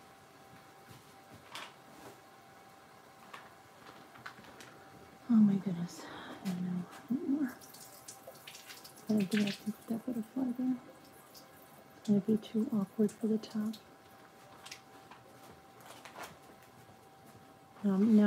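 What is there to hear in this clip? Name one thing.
Paper rustles softly under hands.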